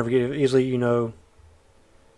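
A man speaks briefly and with animation, close to a microphone.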